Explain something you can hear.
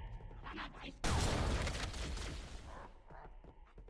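A plasma grenade bursts loudly with a crackling roar.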